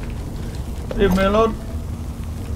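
A man speaks briefly through a headset microphone.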